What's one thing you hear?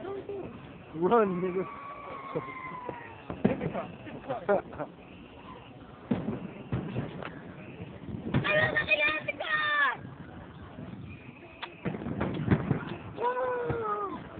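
Fireworks rockets whistle as they rise.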